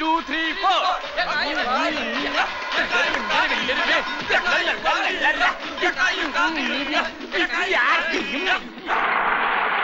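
A group of young men sing loudly and with animation.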